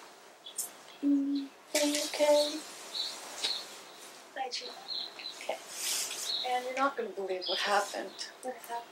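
Young women talk quietly close by.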